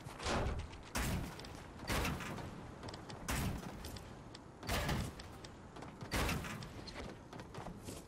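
Building pieces thud and clatter into place in quick bursts.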